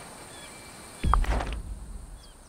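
A soft whoosh sounds as a menu opens.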